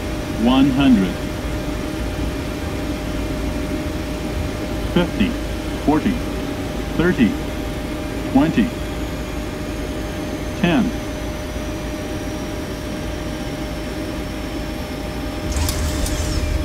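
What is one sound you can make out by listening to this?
An airliner's jet engines hum on the approach.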